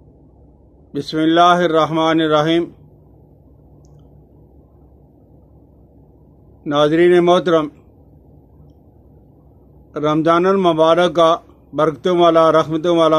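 An elderly man speaks slowly and close to the microphone, in short phrases with long pauses.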